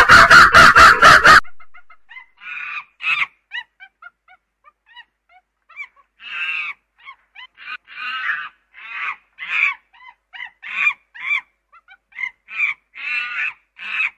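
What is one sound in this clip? A chimpanzee screams and shrieks loudly, close by.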